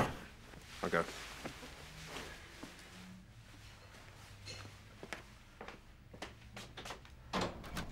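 A woman speaks briefly in a low voice.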